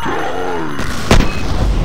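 An energy explosion crackles and fizzles.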